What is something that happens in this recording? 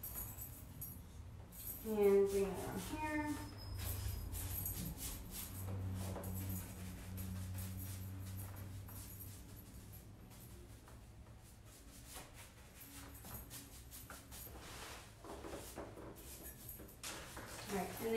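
A brush scrubs against wood with short, rough strokes.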